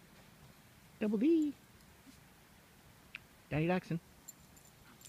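A small dog yelps twice.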